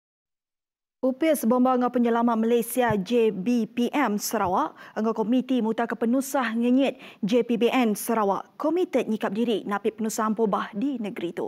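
A woman speaks clearly and steadily into a microphone, reading out news.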